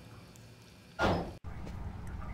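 A door swings open with a heavy thud.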